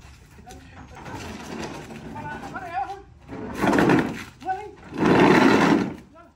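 A large wooden shed scrapes and thumps as it is tipped over.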